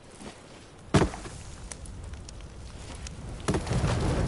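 A campfire flares up and crackles.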